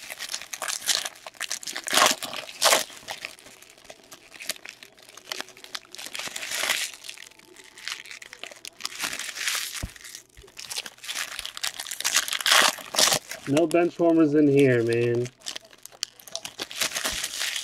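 Foil card wrappers crinkle and rustle as they are torn open.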